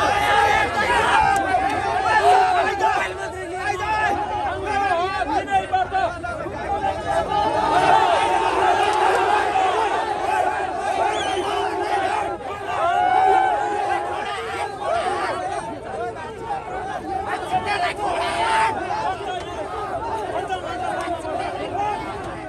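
A large crowd of men shouts and argues loudly outdoors.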